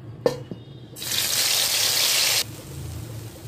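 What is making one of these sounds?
Hot oil sizzles loudly as food is fried.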